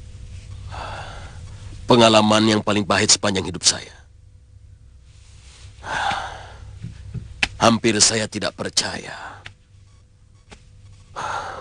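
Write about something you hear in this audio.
An older man speaks earnestly and close by.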